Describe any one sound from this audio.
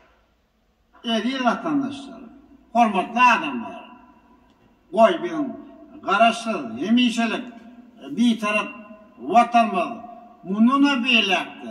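A middle-aged man speaks formally into a microphone in a large hall.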